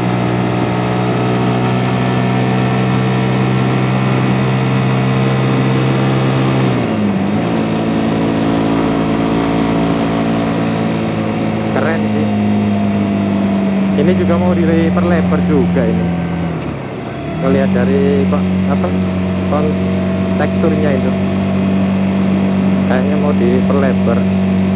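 A motorcycle engine hums steadily at speed, dropping briefly as gears change.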